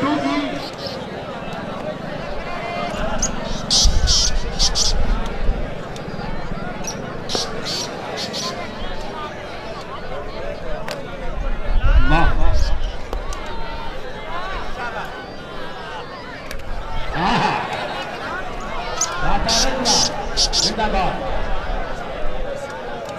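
A large outdoor crowd chatters steadily.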